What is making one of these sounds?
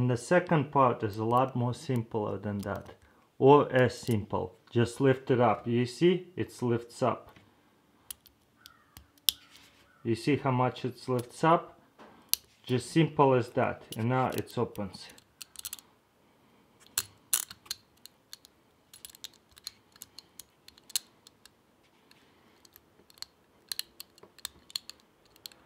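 Small metal clicks and scrapes come from a lock being picked.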